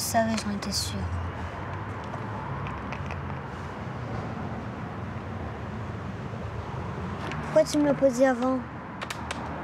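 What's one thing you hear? A young girl speaks quietly, close by.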